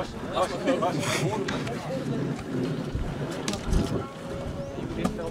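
Young men talk and shout nearby outdoors.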